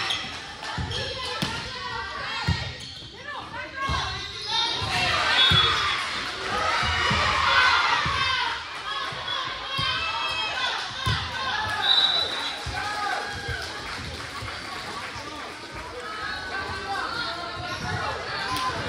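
Spectators chatter and cheer.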